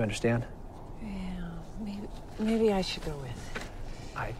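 A woman answers quietly nearby.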